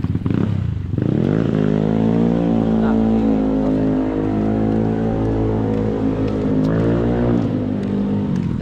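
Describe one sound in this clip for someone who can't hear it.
A motor tricycle engine hums steadily nearby.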